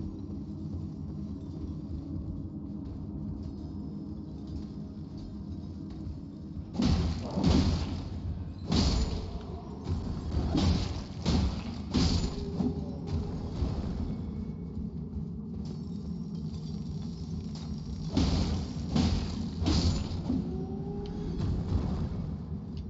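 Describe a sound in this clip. Low droning music plays throughout.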